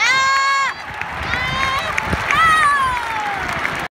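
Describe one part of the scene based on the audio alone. A large crowd murmurs outdoors in an open stadium.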